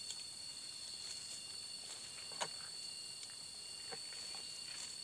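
Dry leaves crackle under a man's footsteps.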